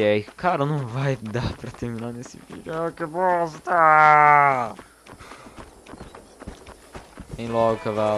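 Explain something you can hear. Footsteps run quickly over dry dirt.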